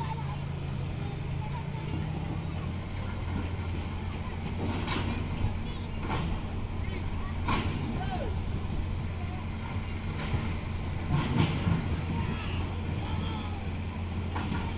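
A truck engine idles steadily at a distance.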